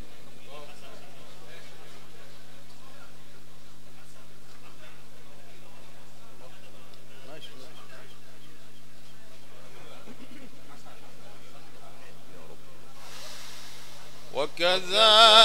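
A crowd of men chat quietly nearby.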